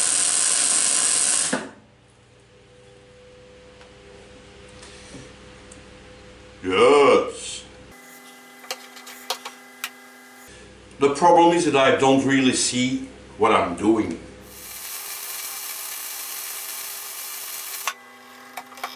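A MIG welder crackles and hisses as it lays a weld.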